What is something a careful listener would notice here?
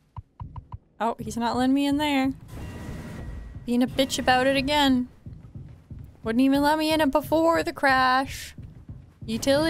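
A young woman talks animatedly into a close microphone in a high, bright voice.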